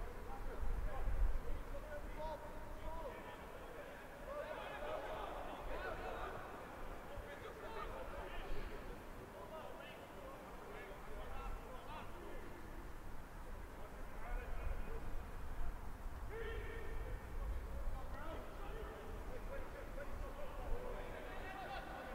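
Young men shout calls across an open field outdoors.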